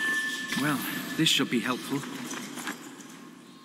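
Footsteps scuff over rocky ground.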